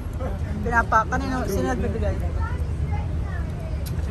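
A young girl talks casually close by.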